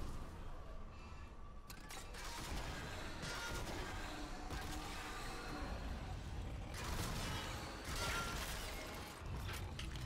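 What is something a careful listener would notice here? A monster shrieks and snarls during a fight.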